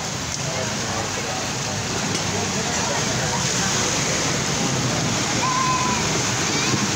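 A car drives through deep water, splashing loudly.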